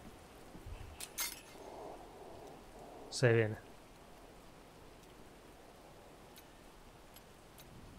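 A lock clicks as it is picked.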